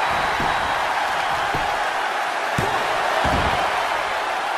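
Bodies slam onto a wrestling mat with heavy thuds.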